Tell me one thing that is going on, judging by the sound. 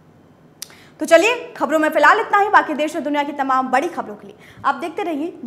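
A young woman speaks clearly into a microphone like a news presenter.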